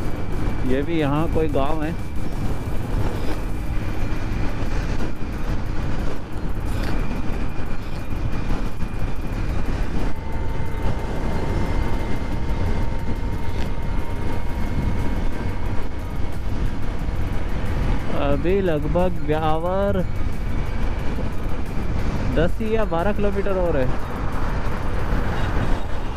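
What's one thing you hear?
Wind rumbles loudly against a moving motorcycle.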